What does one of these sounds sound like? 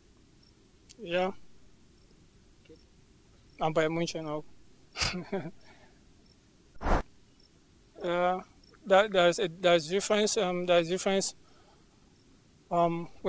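A young man speaks calmly and close into a microphone, in short bursts with pauses.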